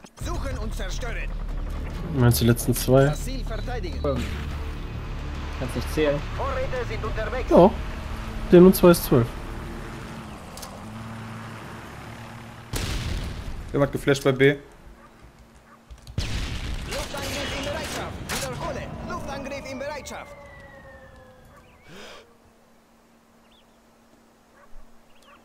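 A rifle fires a loud, booming shot.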